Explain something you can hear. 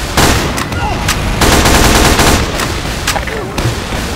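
A submachine gun fires rapid bursts.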